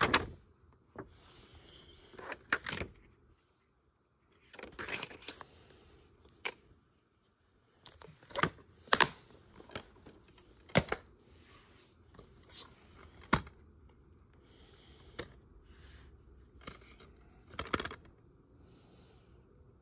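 Plastic cases click and clack as they are opened and handled.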